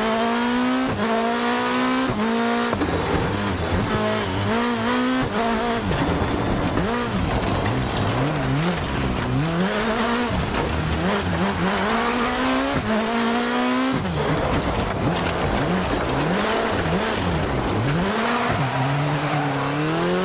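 A car engine revs hard, rising and dropping in pitch as it changes gear.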